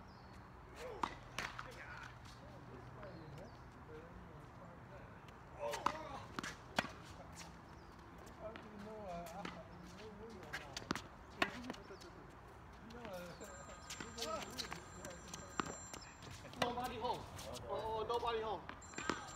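Tennis balls are struck with rackets, each hit a sharp pock.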